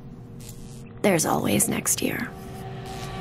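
A woman gasps and moans weakly nearby.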